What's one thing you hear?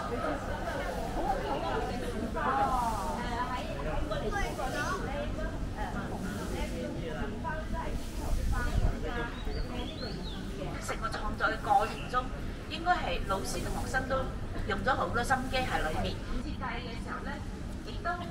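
Young people chatter quietly nearby.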